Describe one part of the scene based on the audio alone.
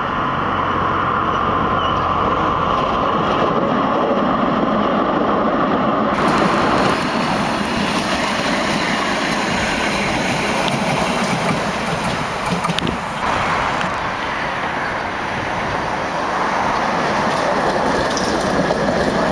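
A tram rumbles past close by on its rails.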